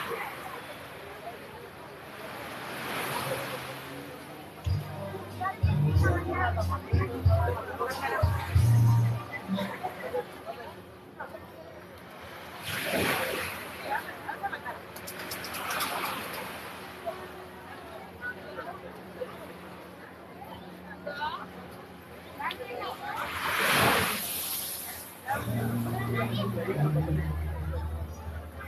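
Bare feet scuff and thump on sand.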